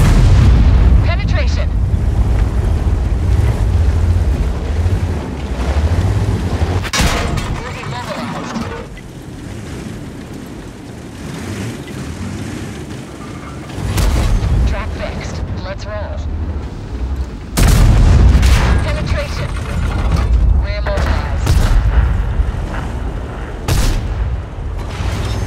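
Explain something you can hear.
Tank tracks clatter and squeak over the ground.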